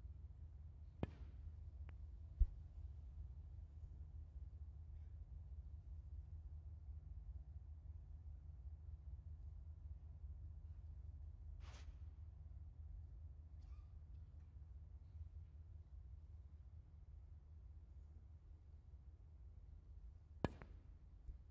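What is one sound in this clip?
A cue strikes a snooker ball with a sharp click.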